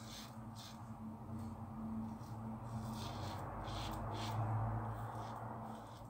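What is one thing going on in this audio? A safety razor scrapes through lathered stubble.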